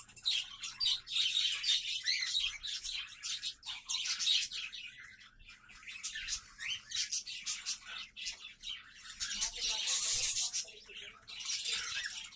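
Many small parrots chirp and screech shrilly and constantly close by.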